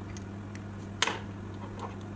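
A metal cap snaps onto a pen with a sharp click.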